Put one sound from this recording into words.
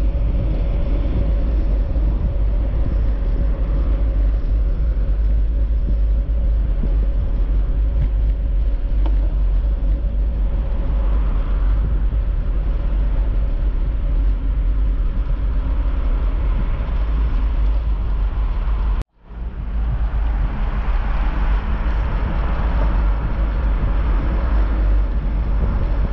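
Traffic rumbles past steadily on a nearby road.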